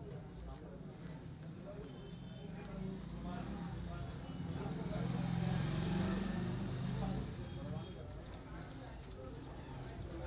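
Hands rub and massage wet, lathered skin with soft squelching.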